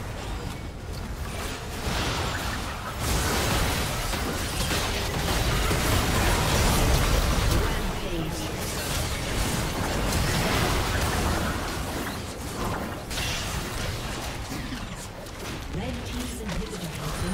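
Spell effects crash and whoosh in a fast game battle.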